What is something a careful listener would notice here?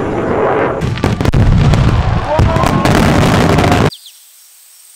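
Fireworks bang and crackle.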